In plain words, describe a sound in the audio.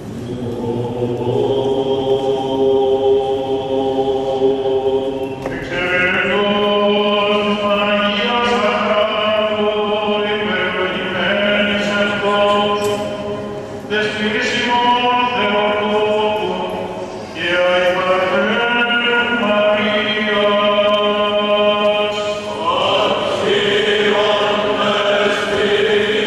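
A choir of men chants in unison, echoing through a large hall.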